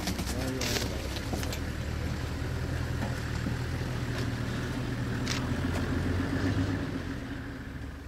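A lion tears and chews meat with wet crunching sounds.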